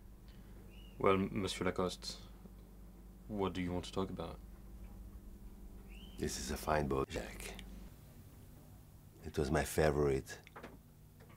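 A middle-aged man speaks calmly nearby in a quiet room.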